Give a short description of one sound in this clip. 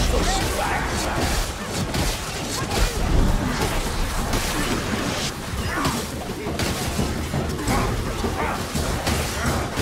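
Creatures snarl and screech as they attack.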